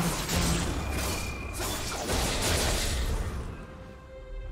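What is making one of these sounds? Game spells and weapons clash and burst in a fight.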